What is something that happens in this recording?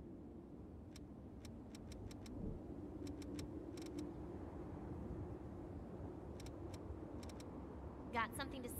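Short soft clicks sound as menu options are selected.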